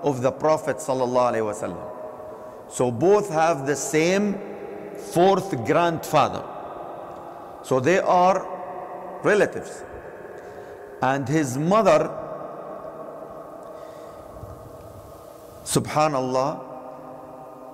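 A man speaks in phrases through a loudspeaker, in a large echoing hall.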